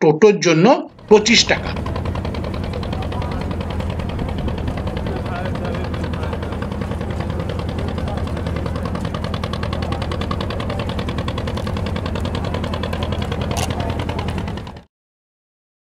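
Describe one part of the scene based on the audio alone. A boat engine rumbles steadily across the water.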